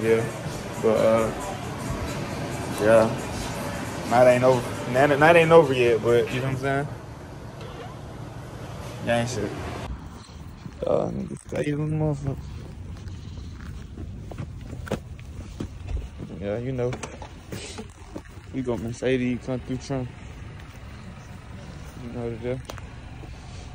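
A young man talks casually, close to the microphone.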